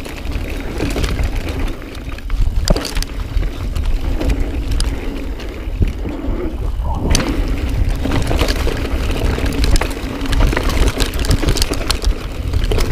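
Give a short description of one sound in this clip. Bike tyres rumble and crunch over a dirt trail.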